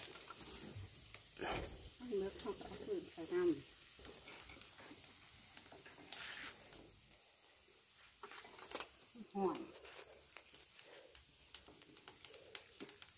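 Wood fire crackles and pops.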